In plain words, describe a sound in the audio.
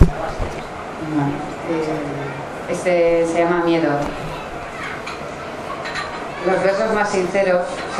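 A woman speaks through a microphone and loudspeaker.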